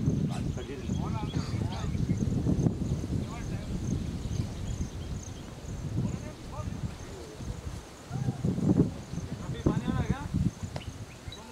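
Men call out across an open field.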